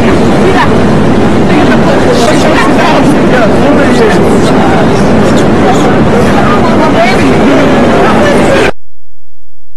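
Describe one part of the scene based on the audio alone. Wind roars loudly past during a fast ride.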